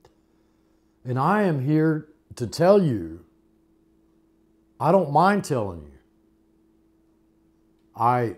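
An elderly man speaks calmly and closely into a microphone, in short phrases with pauses.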